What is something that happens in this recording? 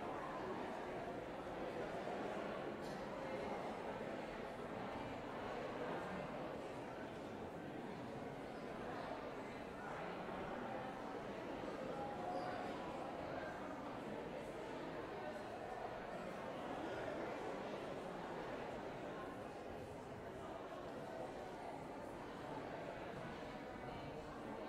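A crowd of men and women chat and greet one another all at once in a large echoing hall.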